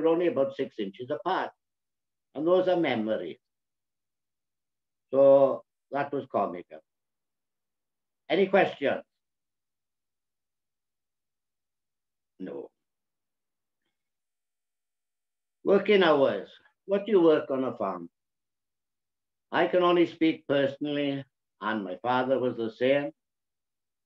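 An elderly man speaks calmly over an online call, in short bursts with pauses.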